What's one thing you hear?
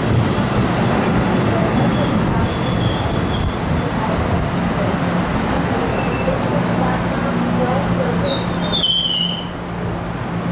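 Steel train wheels squeal on the rails.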